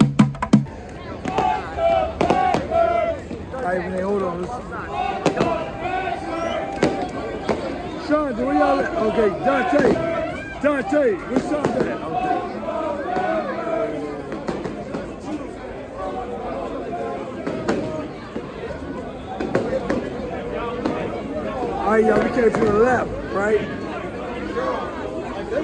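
A large crowd of men and women chatters and cheers loudly in an echoing passage.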